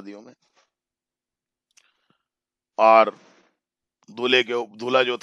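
A boy speaks in short bursts through an online call.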